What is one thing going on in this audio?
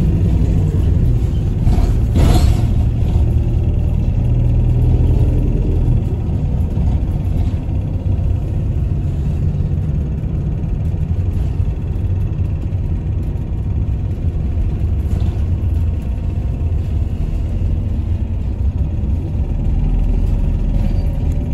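A car rolls along a road with a steady low rumble.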